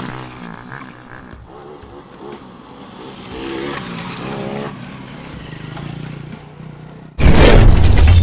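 Motorcycle tyres splash through shallow water.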